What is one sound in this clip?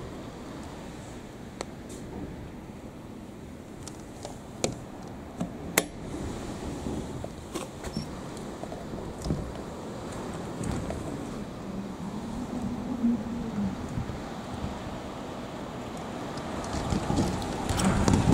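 Raindrops tap against a window.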